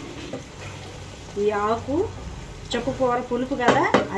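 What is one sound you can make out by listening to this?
A wooden spatula scrapes and stirs in a frying pan.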